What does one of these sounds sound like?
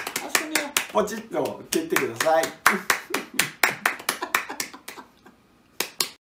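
Two people clap their hands quickly and steadily.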